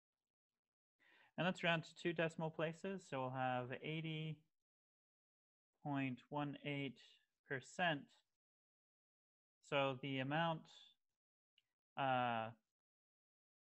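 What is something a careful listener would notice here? A man speaks calmly through an online call microphone, explaining with pauses.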